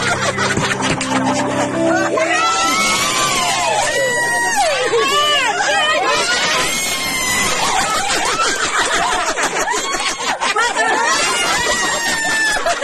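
Women laugh and shriek excitedly close by.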